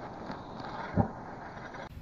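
A toy car lands with a dull thud on the ground.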